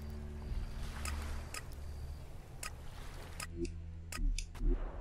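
Short game menu clicks tick several times.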